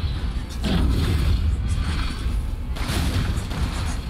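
A gunshot fires with a loud bang.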